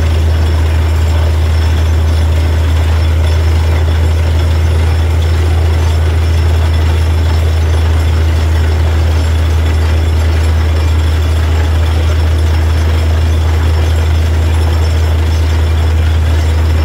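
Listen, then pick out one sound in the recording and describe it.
A drilling rig's diesel engine roars steadily and loudly nearby.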